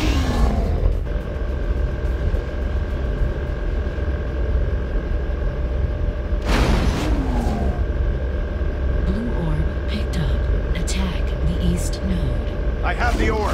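A hoverboard hums steadily.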